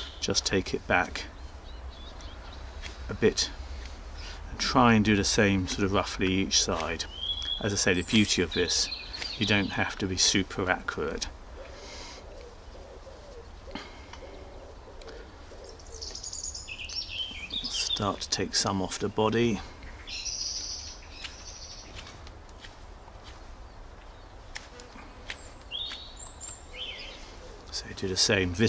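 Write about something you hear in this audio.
A knife scrapes and shaves wood in short strokes.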